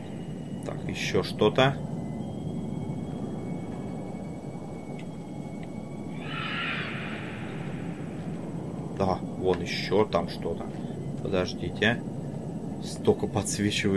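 A young man speaks in short bursts, close to a microphone.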